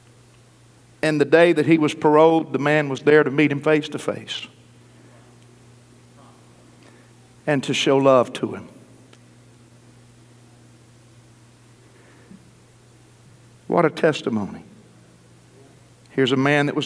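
A middle-aged man preaches through a microphone in bursts, with pauses between.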